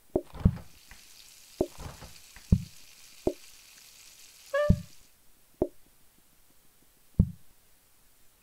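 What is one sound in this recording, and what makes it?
Short cartoon-like thuds and pops sound at uneven intervals.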